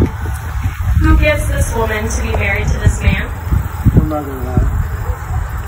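A woman speaks calmly into a microphone outdoors.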